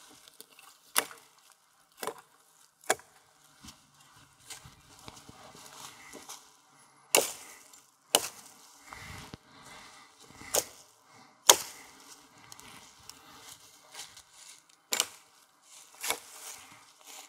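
An axe chops sharply through branches in a row of crisp blows.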